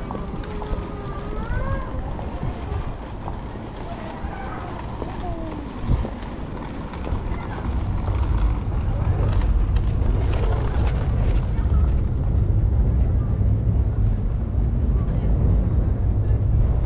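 Footsteps of passers-by tap on a paved street.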